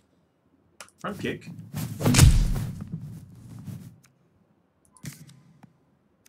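A man speaks into a microphone in short bursts, close up.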